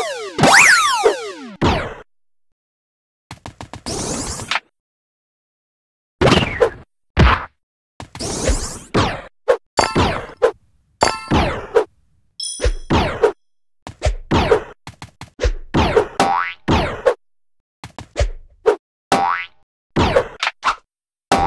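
Short springy jump sound effects from a video game play again and again.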